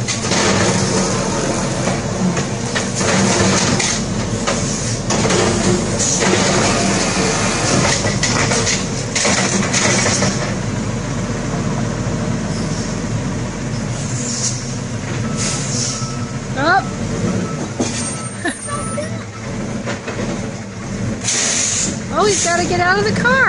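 A garbage truck engine rumbles steadily nearby.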